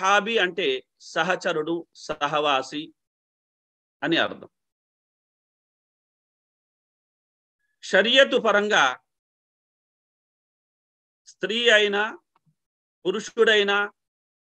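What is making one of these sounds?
A middle-aged man speaks calmly in short phrases over an online call, with pauses between them.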